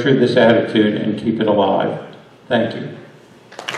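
An elderly man speaks calmly into a microphone in a large room.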